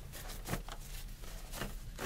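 Paper crinkles and rustles close to a microphone.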